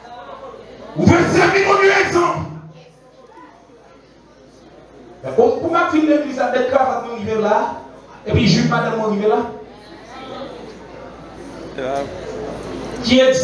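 A young man preaches loudly and with animation through a microphone and loudspeakers.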